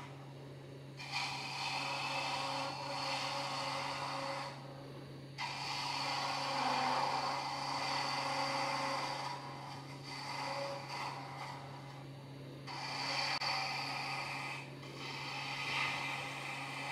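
A chisel scrapes and hisses against spinning wood, in bursts.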